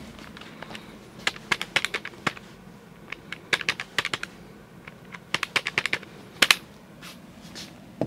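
Calculator buttons click rapidly.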